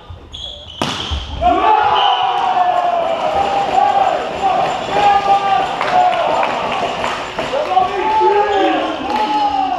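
Young men call out and talk loudly in an echoing hall.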